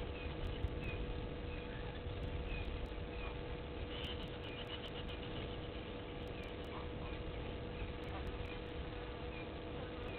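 A bird chirps softly and repeatedly.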